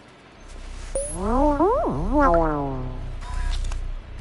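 A robot warbles in quick rising and falling electronic tones.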